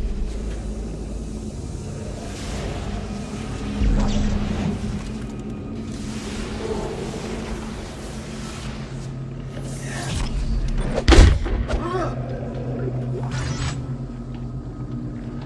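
A low mechanical hum drones steadily throughout.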